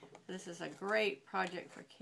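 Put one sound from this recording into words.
Scissors snip through paper.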